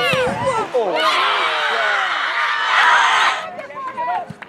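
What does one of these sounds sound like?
A crowd of spectators cheers loudly outdoors.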